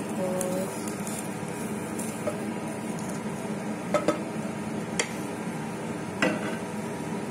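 A wooden spatula knocks and scrapes against a pot.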